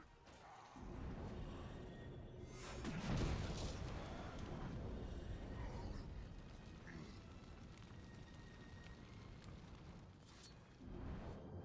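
Magic blasts whoosh and crackle in a fight.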